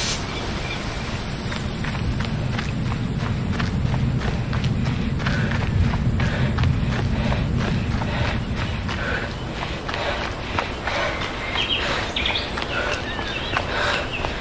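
Footsteps crunch on dirt and gravel.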